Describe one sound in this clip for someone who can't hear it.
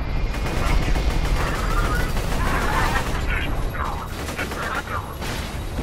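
Explosions boom with crackling bursts.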